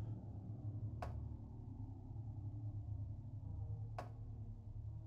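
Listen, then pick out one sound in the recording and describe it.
A person knocks twice on a door, slowly.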